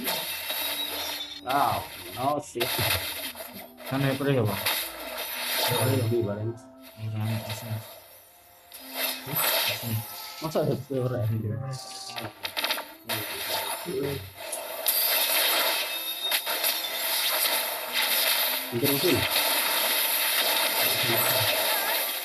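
Fantasy battle sound effects clash, zap and boom in quick bursts.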